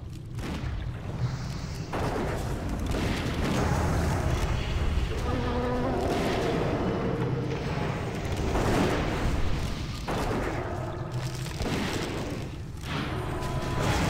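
Magic spells crackle and burst with the clash of weapons in a fantasy battle.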